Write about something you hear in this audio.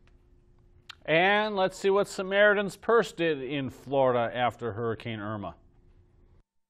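A middle-aged man speaks clearly and steadily, close to a microphone.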